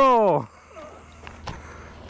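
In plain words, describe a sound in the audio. Boots crunch on gravel close by.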